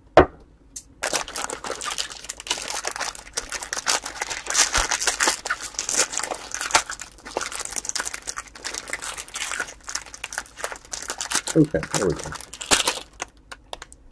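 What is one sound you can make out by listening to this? Foil wrappers crinkle and rustle as hands handle them.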